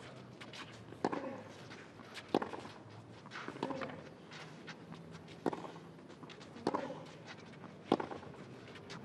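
Tennis balls are struck hard with rackets in a steady rally.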